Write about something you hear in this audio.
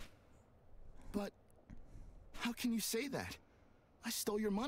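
A young man speaks animatedly into a microphone.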